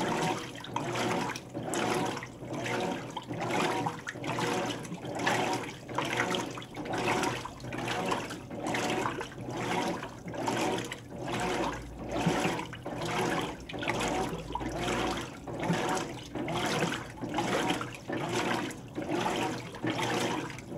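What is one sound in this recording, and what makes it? A washing machine motor hums steadily.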